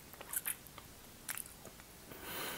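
A young woman sucks and smacks on a candy.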